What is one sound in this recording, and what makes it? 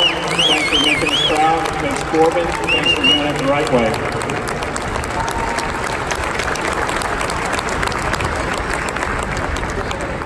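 A crowd claps and applauds steadily.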